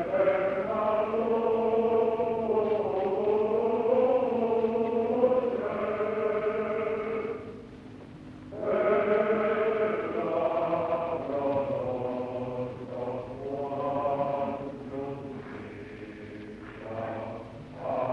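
A woman sings operatically in a full voice, heard through an old, muffled recording.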